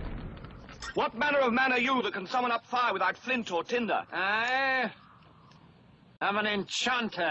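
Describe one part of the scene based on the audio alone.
A man speaks loudly and theatrically outdoors.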